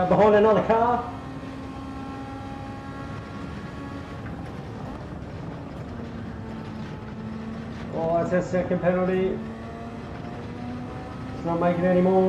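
A racing car engine hums steadily and shifts pitch as it speeds up and slows down.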